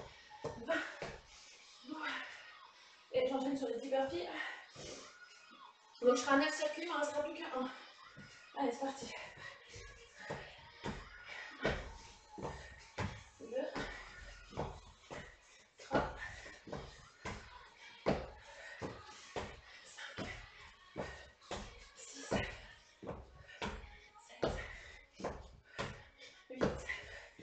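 Feet thump and shuffle on a hard floor.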